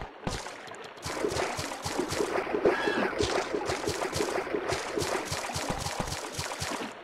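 Footsteps splash quickly through shallow water.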